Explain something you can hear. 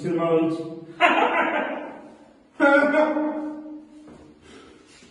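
Two men laugh loudly.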